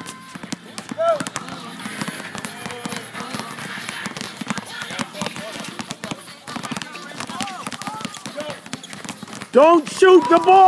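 Young children shout and call out nearby.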